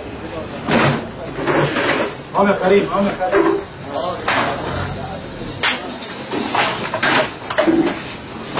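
Men talk loudly and with animation nearby.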